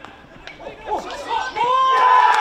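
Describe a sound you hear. A hockey ball is struck hard with a stick.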